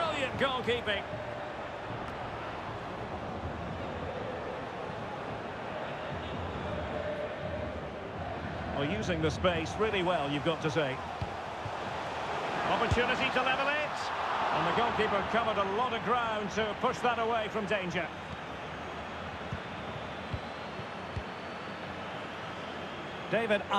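A stadium crowd murmurs and cheers steadily.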